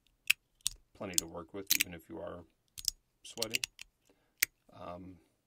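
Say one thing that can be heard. A small metal clip clicks sharply as it is handled.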